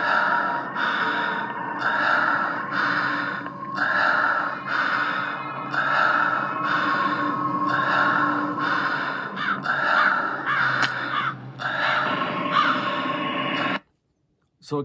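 Upbeat electronic game music plays with a steady pulsing beat from a tablet speaker.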